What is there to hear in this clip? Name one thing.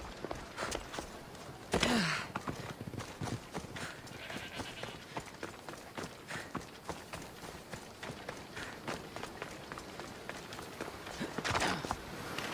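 Footsteps run over grass and rock.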